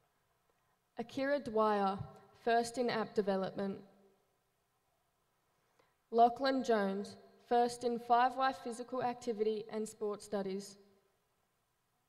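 A woman speaks calmly.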